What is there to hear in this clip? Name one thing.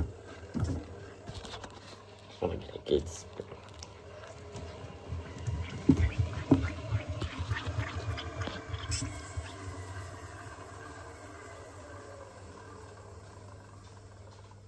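A washing machine drum rumbles as it turns.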